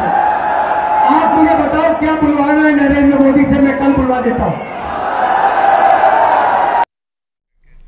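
A man speaks forcefully through a loudspeaker to a crowd.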